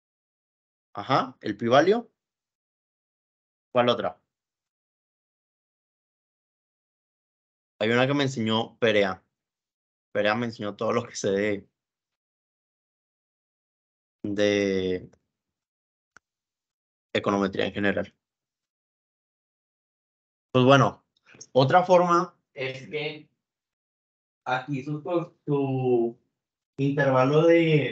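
A man speaks calmly in short phrases with pauses, heard through an online call.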